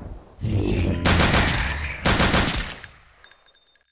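Gunshots boom loudly, one after another, and echo away.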